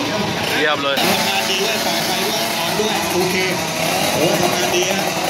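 A small motorcycle engine idles and revs nearby.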